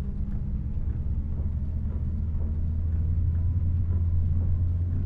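A bus engine hums low and steady as the bus drives along.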